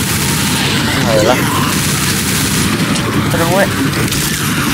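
Zombies snarl and groan.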